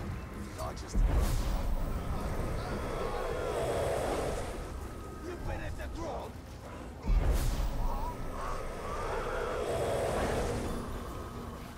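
Magic blasts whoosh through the air.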